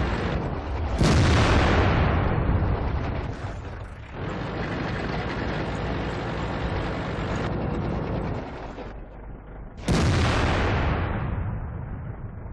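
A tank cannon fires with a loud boom that rolls away.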